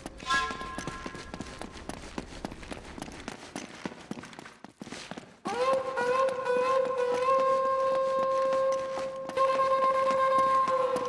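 Footsteps run on stone steps.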